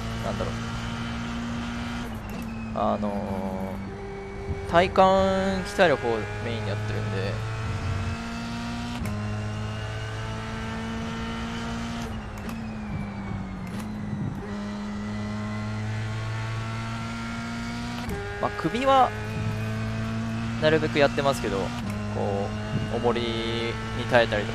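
A racing car engine drones steadily and shifts up and down through the gears.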